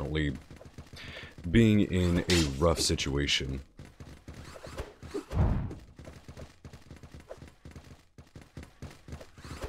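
Rapid laser gunfire zaps and pops.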